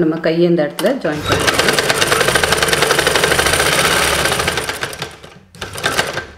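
A sewing machine whirs as it stitches fabric rapidly.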